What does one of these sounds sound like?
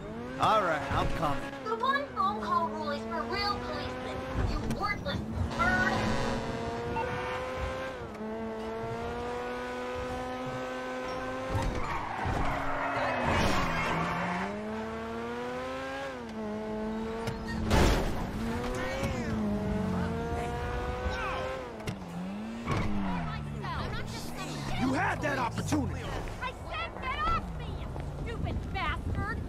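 A car engine revs up and down as it speeds along.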